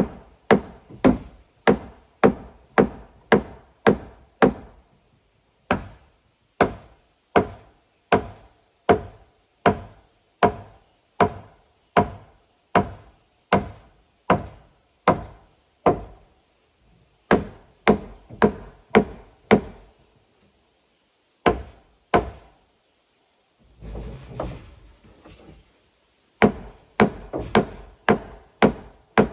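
A hammer strikes wood in steady, repeated blows.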